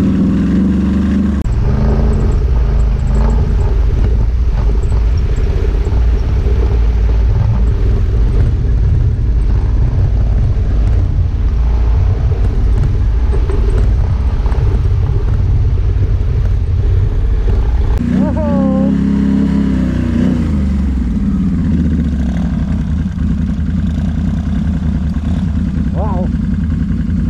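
A quad bike engine rumbles close by.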